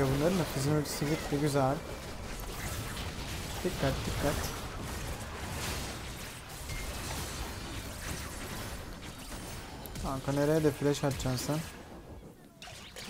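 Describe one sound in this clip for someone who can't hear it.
Spell effects whoosh and crackle in a fast battle game.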